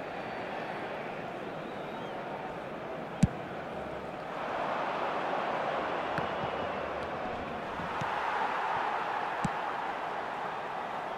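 A stadium crowd roars steadily and swells louder.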